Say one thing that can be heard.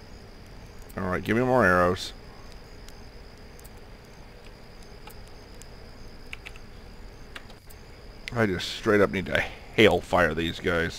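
A man speaks casually into a close microphone, in short bursts.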